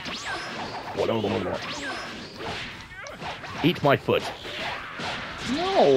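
Video game fighters clash with sharp energy blasts and impact bursts.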